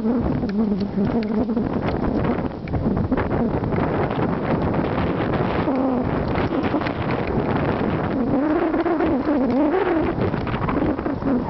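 Bicycle tyres crunch over a dirt trail.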